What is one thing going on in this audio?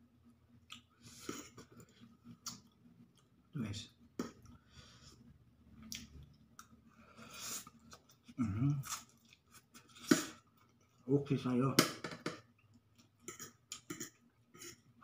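A fork scrapes and clinks against a plate.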